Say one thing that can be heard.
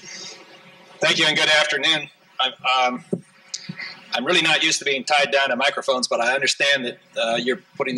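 A middle-aged man speaks calmly into a microphone, heard through loudspeakers in a large hall.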